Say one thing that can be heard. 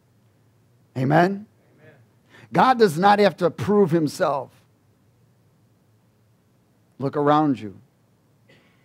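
A man speaks with animation through a microphone, in short bursts with pauses.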